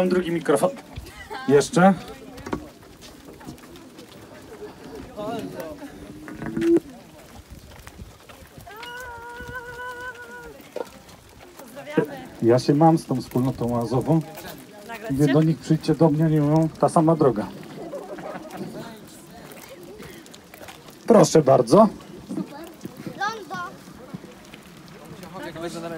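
A crowd of people chatter and talk nearby.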